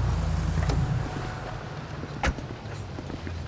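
A car door opens and slams shut.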